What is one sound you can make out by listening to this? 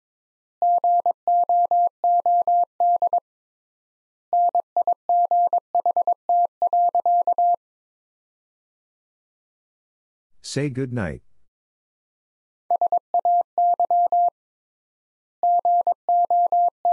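A telegraph key taps out Morse code as a steady beeping tone in quick short and long bursts.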